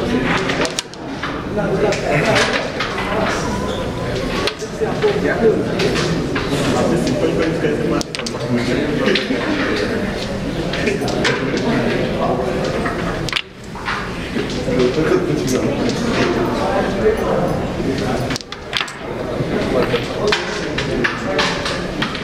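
Carrom pieces click sharply as they are flicked and strike one another on a wooden board.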